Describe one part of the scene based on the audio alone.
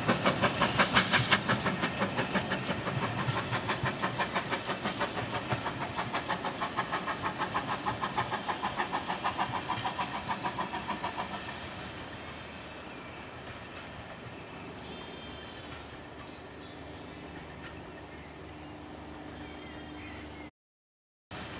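Train wheels clatter steadily over the rails.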